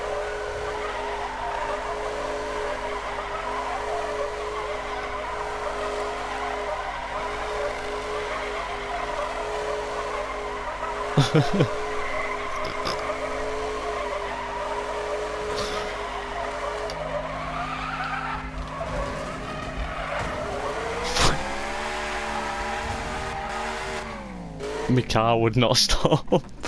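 A racing car engine roars steadily.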